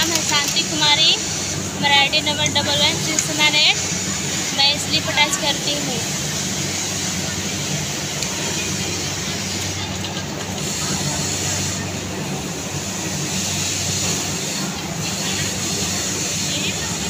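A sewing machine hums steadily.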